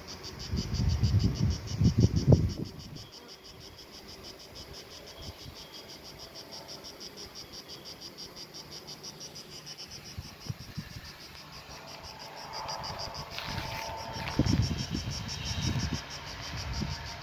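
Bees buzz steadily in a dense swarm.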